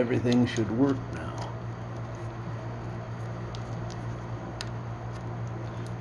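A plastic wire connector clicks into place.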